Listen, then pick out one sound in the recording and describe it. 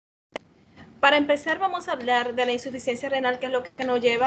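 A woman speaks steadily over an online call.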